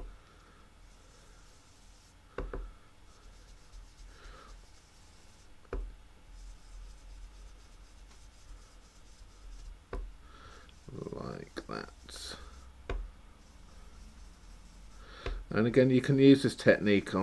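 A foam dauber softly dabs and brushes against paper.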